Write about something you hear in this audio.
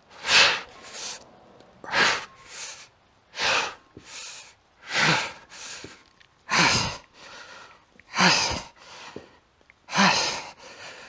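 A man inhales quickly between lifts.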